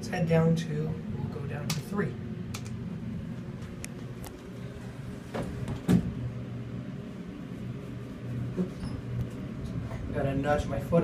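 A lift hums steadily.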